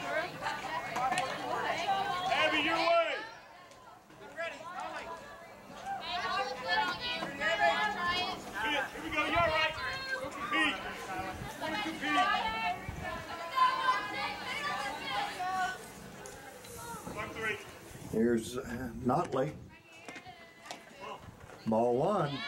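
Men and women in a small crowd of spectators chat nearby outdoors.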